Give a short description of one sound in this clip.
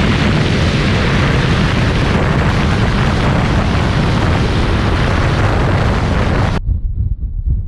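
Wind and road noise roar loudly around a fast-moving car.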